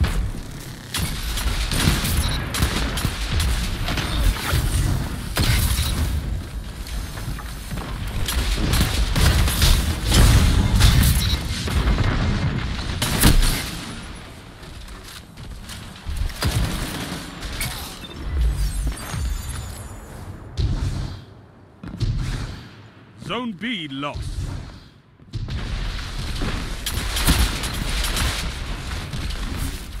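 Gunshots fire rapidly in quick bursts.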